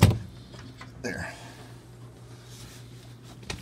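Plastic sheeting rustles and crinkles under a hand.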